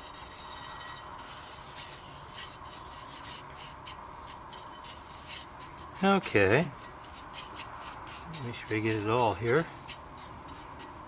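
A small metal tool scrapes and ticks against a metal pan.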